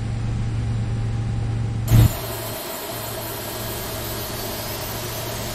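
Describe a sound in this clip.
Jet engines hum steadily at idle.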